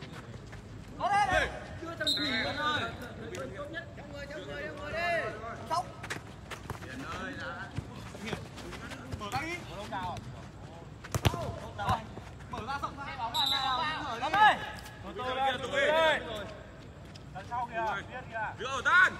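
Young men shout and call out to each other across an open field.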